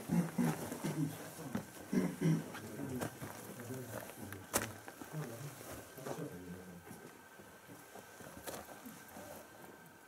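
A man speaks calmly and quietly close by, in a hollow, echoing space.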